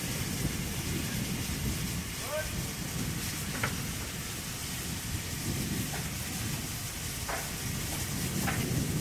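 Steam locomotives rumble and hiss steadily nearby.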